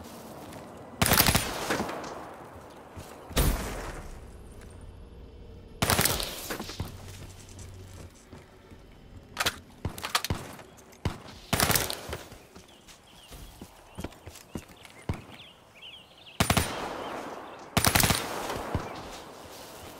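A rifle fires in short rapid bursts.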